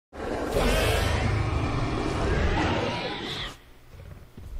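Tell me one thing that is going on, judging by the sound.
A large creature roars loudly and deeply.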